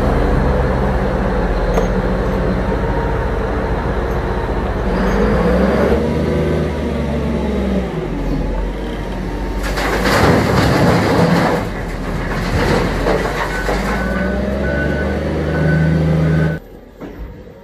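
A large diesel engine rumbles steadily nearby.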